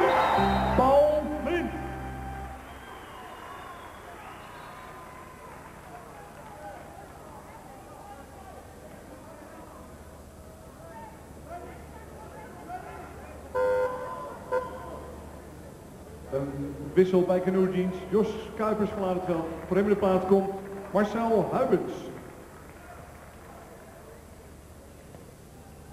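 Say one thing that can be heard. A large crowd murmurs and cheers in an echoing hall.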